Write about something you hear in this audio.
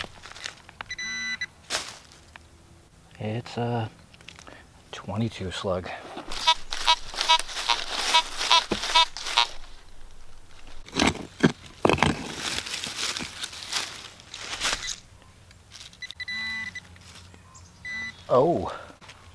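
A metal detector beeps in quick pulses.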